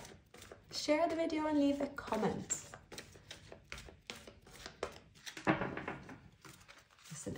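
Playing cards are shuffled, with quick crisp flicks and riffles.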